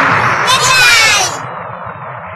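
A man shouts fiercely.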